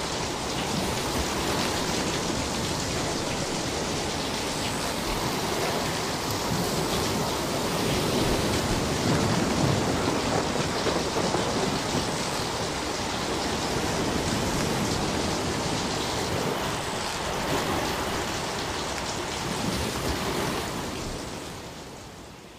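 Small waves wash up onto the shore and break close by, in a steady rushing surge.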